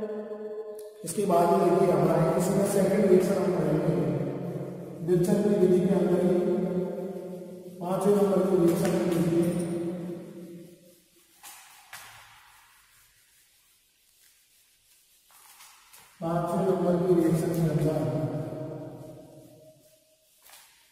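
An elderly man speaks steadily, explaining, close by.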